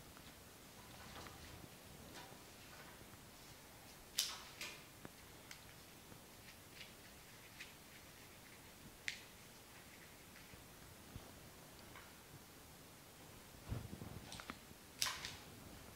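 Leaves and stems rustle and tap as flowers are handled.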